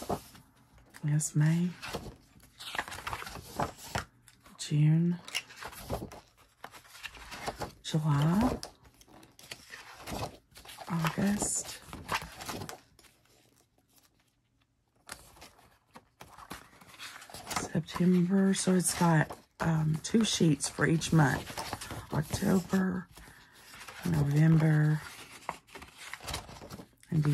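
Paper pages rustle and flap as they are turned in a spiral-bound book.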